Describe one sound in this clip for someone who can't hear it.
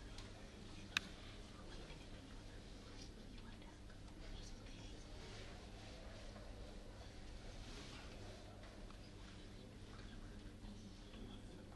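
A man speaks quietly in a low voice close by.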